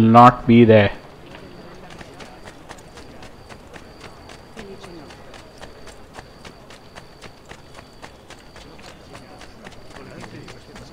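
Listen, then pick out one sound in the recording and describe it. Quick footsteps run across stone paving.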